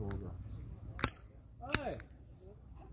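A lighter clicks a few times close by.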